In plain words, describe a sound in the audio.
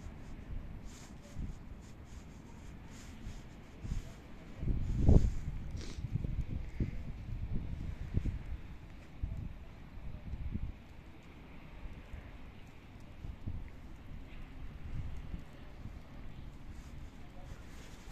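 Wind gusts rumble across the microphone outdoors.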